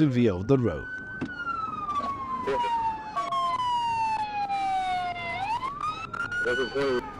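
A police siren wails up and down close by.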